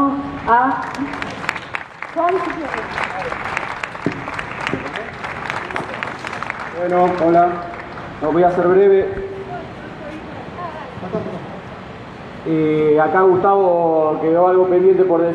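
A woman sings through a microphone and loudspeaker outdoors.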